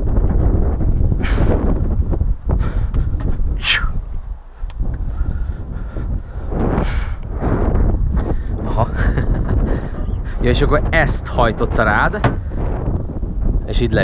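Wind rushes loudly over the microphone.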